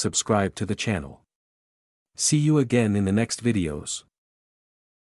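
A man speaks cheerfully and clearly, in two short phrases.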